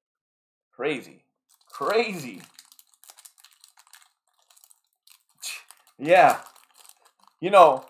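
A foil card wrapper crinkles as it is torn open.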